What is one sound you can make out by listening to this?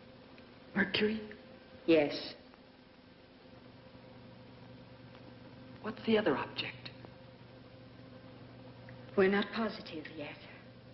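A woman speaks in short, hushed phrases.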